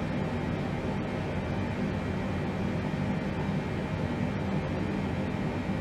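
Jet engines drone steadily with a low rumble.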